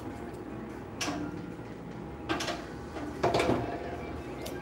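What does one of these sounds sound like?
A metal press frame clanks as it is lowered and lifted.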